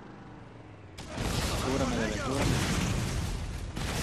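A loud explosion bursts and rumbles.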